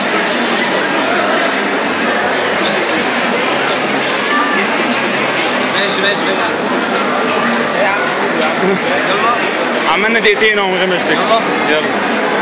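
Many voices murmur in a busy, echoing hall.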